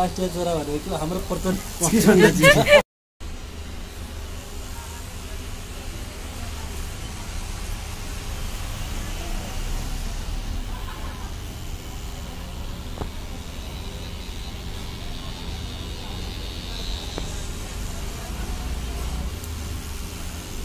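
A tattoo machine buzzes steadily.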